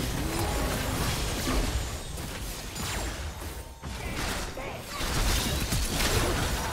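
Fantasy battle sound effects crackle, zap and whoosh rapidly.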